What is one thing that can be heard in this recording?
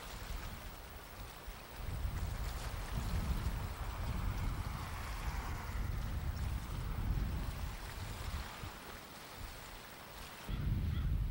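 Wind blows hard, rumbling and buffeting outdoors.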